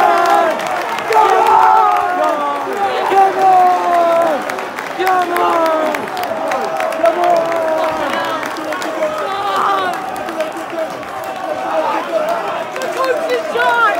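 A large crowd of fans sings and chants loudly together in a stadium.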